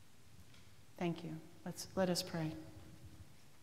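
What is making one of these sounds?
A woman speaks calmly into a microphone in a reverberant hall.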